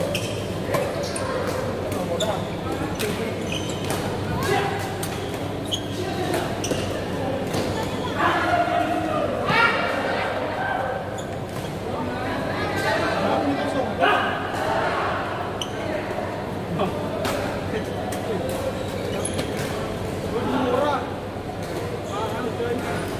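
Shoes squeak and patter on a hard court floor.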